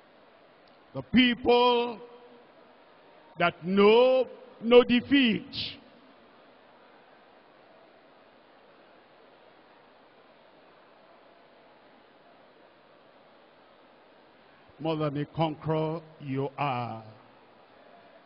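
A man preaches loudly through a microphone in short bursts.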